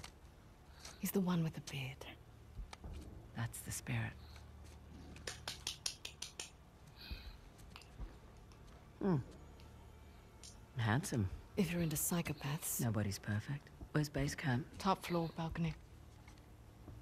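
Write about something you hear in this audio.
A young woman speaks calmly and dryly, close by.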